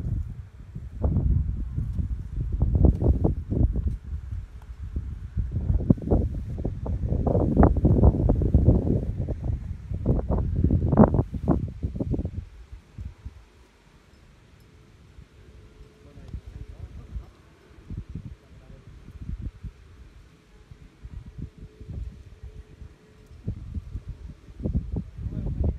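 Footsteps rustle through dry grass and weeds.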